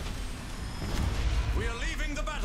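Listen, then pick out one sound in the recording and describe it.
Electric energy crackles and hisses loudly.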